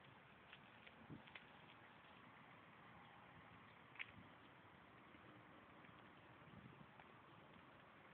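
Dry leaves and twigs rustle and crackle as a small child digs through them by hand.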